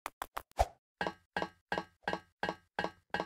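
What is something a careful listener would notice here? Rungs clank softly as someone climbs a ladder.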